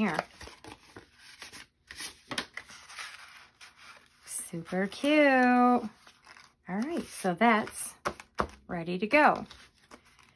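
Stiff paper pages rustle and flap as they are turned.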